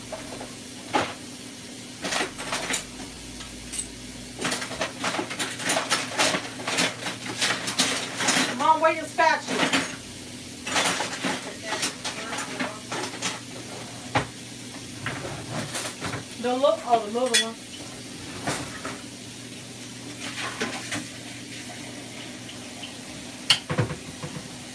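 Dishes and utensils clink and knock on a counter nearby.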